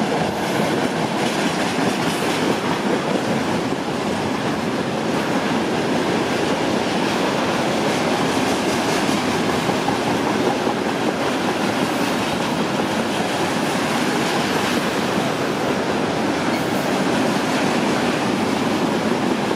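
A freight train of tank cars rumbles past, its wheels rolling on the rails.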